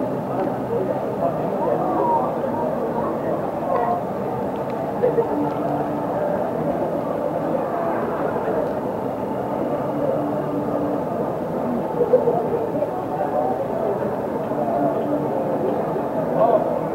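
A crowd of people chatters steadily nearby.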